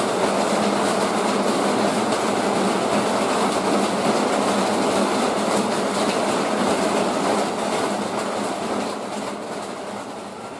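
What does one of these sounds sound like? Heavy rain pours down steadily outdoors and fades away.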